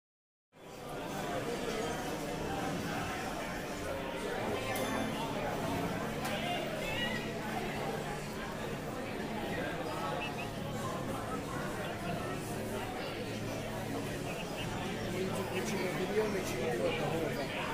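Men and women chatter in the background of a busy room.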